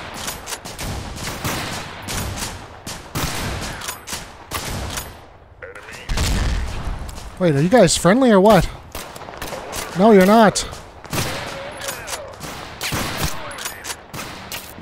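A machine gun fires in rapid bursts close by.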